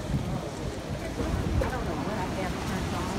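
A woman speaks in the distance.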